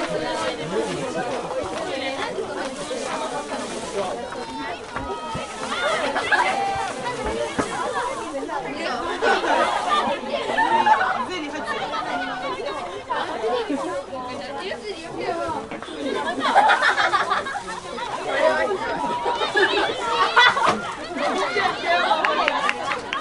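Young women shout and call to each other across an open field.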